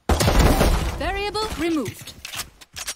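A young woman exclaims loudly into a microphone.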